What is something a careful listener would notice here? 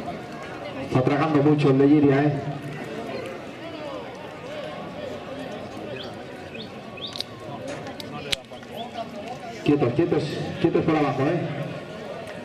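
A man shouts loudly outdoors to call an animal.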